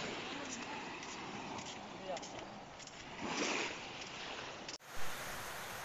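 Small waves lap on a sandy shore.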